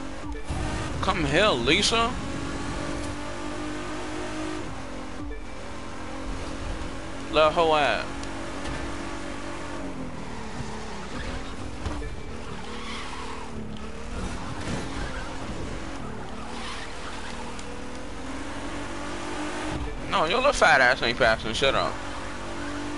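Tyres screech in short bursts.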